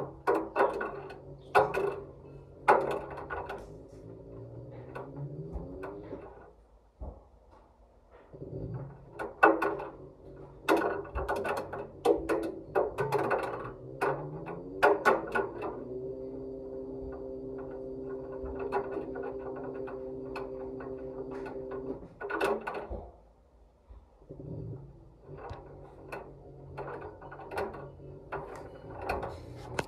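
Balls thud and bounce inside a tumbling stainless steel washing machine drum.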